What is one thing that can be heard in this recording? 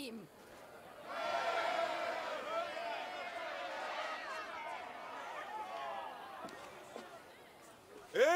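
A crowd cheers and chants loudly.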